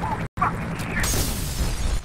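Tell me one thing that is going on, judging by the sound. Glass shatters and tinkles.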